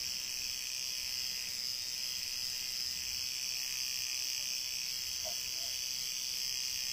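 A tattoo machine buzzes steadily close by.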